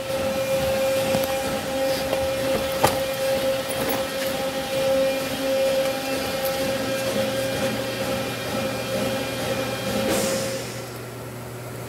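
A high-pressure waterjet cutter hisses and roars as it cuts.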